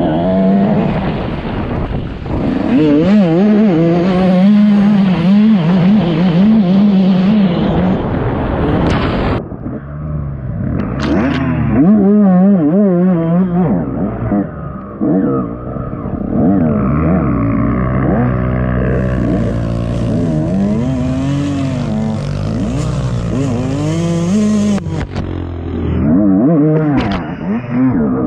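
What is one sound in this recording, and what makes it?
A dirt bike engine revs up and down as it rides a rough trail.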